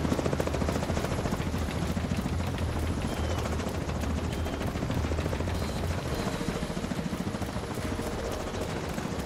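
Footsteps run steadily.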